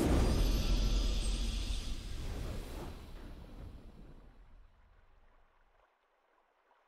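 A triumphant victory fanfare swells and fades away.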